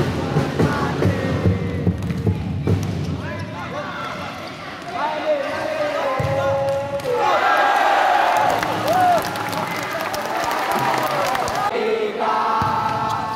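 A ball is kicked with dull thuds on a hard indoor court.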